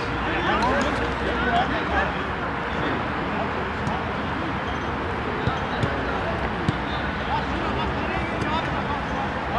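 Men shout and call out to each other across an open field.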